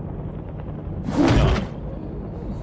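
Wooden planks burst apart with a loud crash.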